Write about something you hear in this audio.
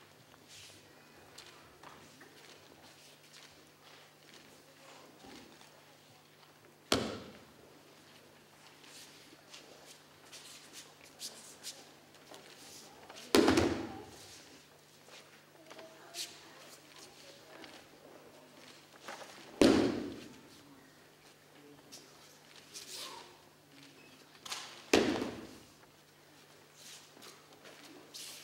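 Bare feet shuffle and slide on a mat.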